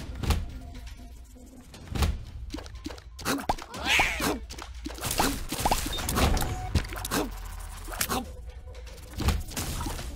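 Video game sound effects of shots, hits and splatters pop and thud in quick succession.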